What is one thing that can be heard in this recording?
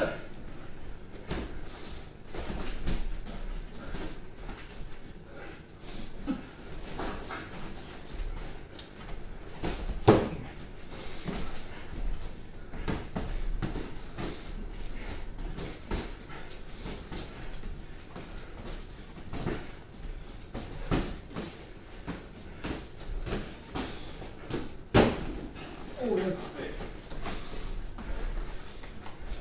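Sneakers shuffle and squeak on a padded mat.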